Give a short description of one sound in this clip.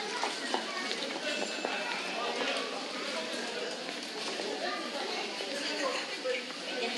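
Voices of people chatter at a distance, outdoors.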